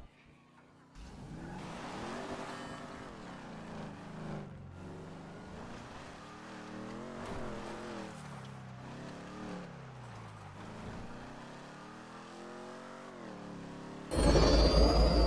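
A car engine revs and roars as a car speeds over rough ground and along a road.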